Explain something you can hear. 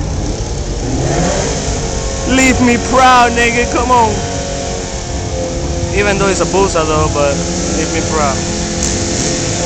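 A motorcycle engine revs in sharp, rising bursts.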